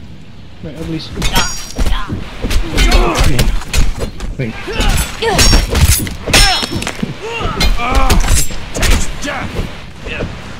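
Blades clash and hack into flesh.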